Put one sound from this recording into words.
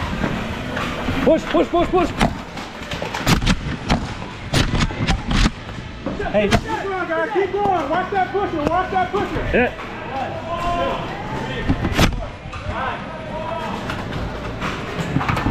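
Men shout with animation nearby in a large echoing hall.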